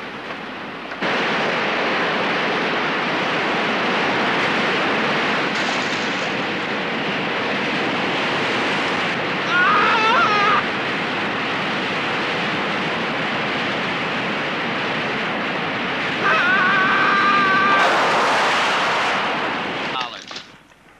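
Water roars and crashes loudly, like a waterfall.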